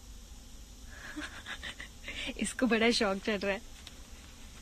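A young woman laughs softly close to a microphone.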